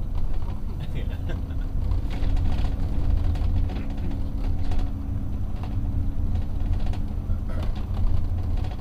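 A heavy engine rumbles and hums steadily while driving.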